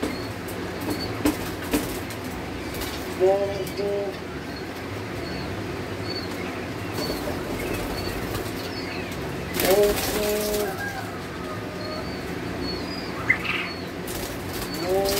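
A plastic crate rattles and knocks.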